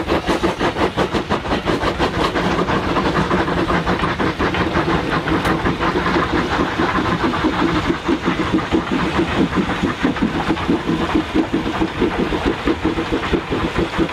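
Railway carriages clatter along the track.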